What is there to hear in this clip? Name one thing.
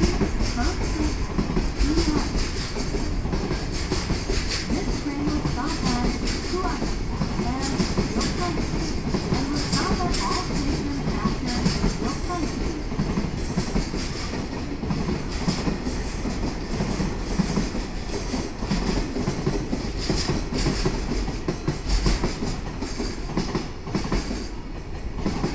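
A long freight train rumbles past on the tracks with steady clattering wheels.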